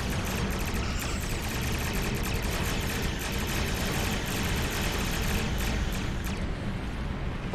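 Laser weapons fire in rapid bursts.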